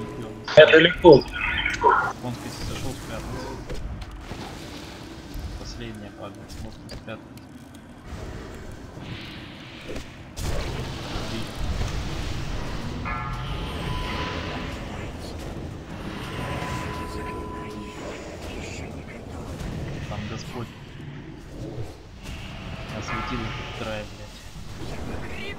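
Magic spells crackle and whoosh in a game battle.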